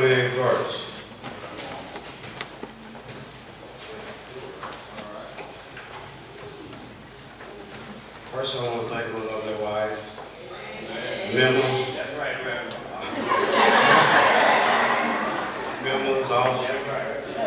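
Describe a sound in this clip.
An elderly man speaks with animation into a microphone, heard through a loudspeaker in an echoing hall.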